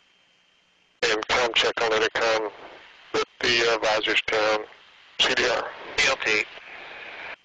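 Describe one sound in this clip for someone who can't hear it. A man speaks in short bursts over a crackly headset intercom.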